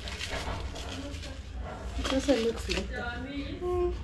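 Powder pours into a plastic bucket.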